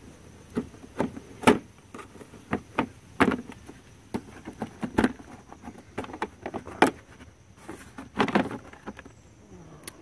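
Hard plastic parts click and knock as hands handle them.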